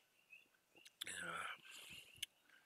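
A man exhales with satisfaction after drinking.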